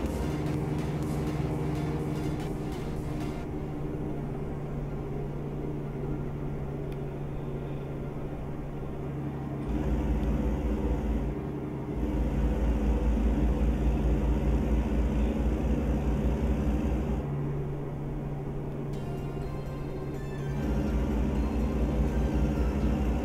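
A heavy truck engine drones steadily, with a deep rumble that swells and eases.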